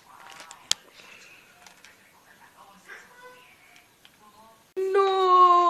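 A young boy talks quietly, close by.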